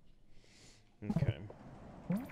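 A short electronic blip sounds.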